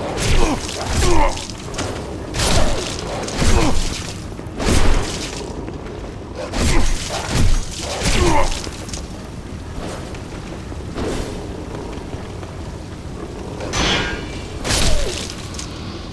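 Swords swing and strike with sharp, heavy hits.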